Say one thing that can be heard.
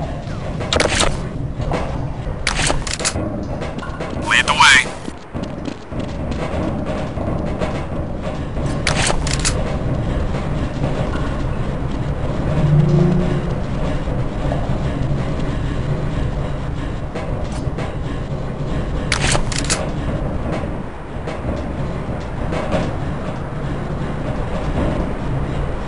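Footsteps clank on metal grating.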